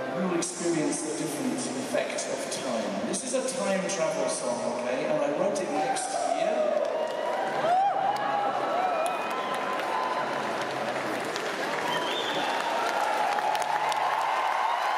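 A man sings into a microphone, heard in a large echoing hall.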